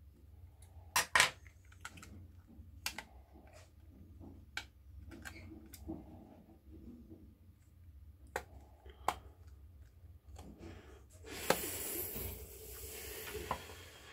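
Fingers handle a phone, rubbing and clicking softly.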